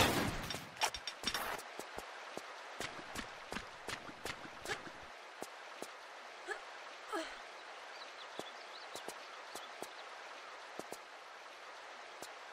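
Footsteps tap softly on rock.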